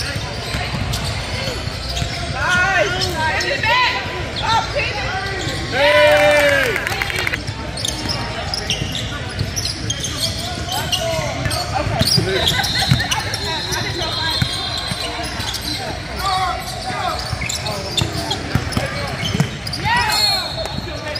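A crowd of spectators and players chatters in the background.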